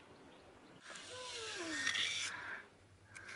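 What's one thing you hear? A wooden plank scrapes against wet mortar.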